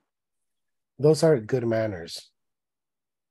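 A young man speaks briefly and calmly over an online call.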